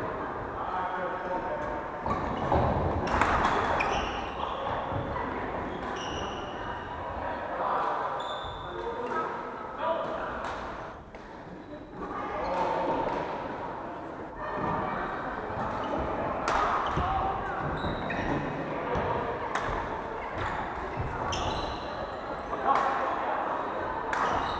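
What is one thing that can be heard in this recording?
Several adults call out and chatter in a large echoing hall.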